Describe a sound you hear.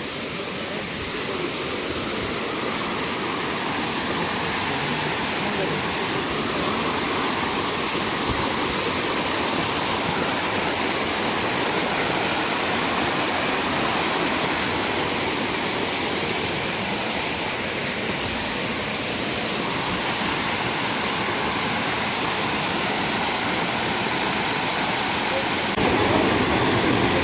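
A waterfall splashes steadily nearby.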